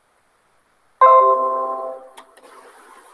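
A computer notification chime rings out once and fades.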